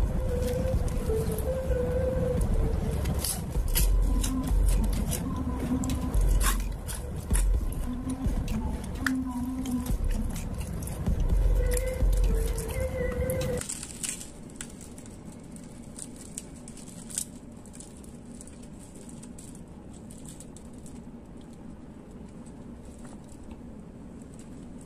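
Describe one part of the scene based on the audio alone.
Crispy fried batter crackles as hands tear it apart.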